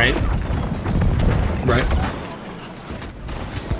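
Magic blasts crackle and whoosh.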